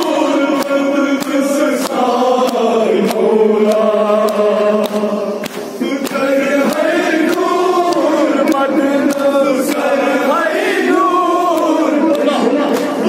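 A young man chants loudly into a microphone, heard through a loudspeaker.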